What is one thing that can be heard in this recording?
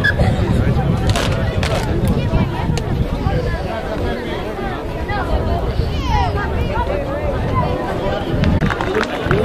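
Young men shout and call to each other at a distance outdoors.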